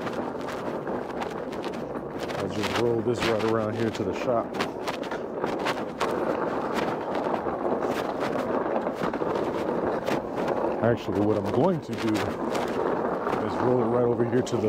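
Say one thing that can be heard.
Small wheels rattle and click over a concrete sidewalk.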